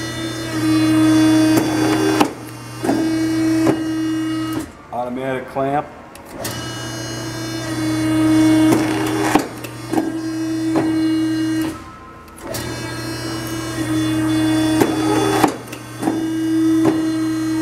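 A cutting machine's motor hums loudly and steadily, with short pauses.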